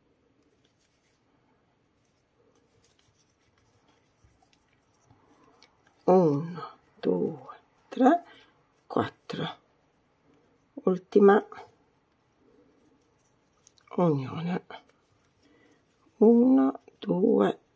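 Yarn rustles softly as a crochet hook pulls it through loops.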